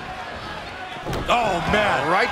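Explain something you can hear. A heavy body slams onto a wrestling mat.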